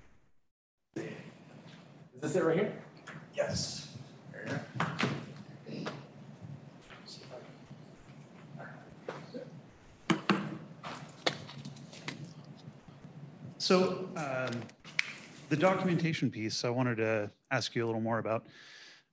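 A man speaks calmly into a microphone in a large room.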